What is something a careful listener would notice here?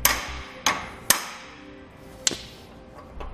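Plastic parts click and knock together.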